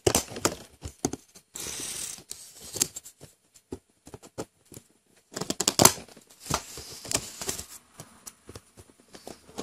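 A knife blade scrapes along plastic.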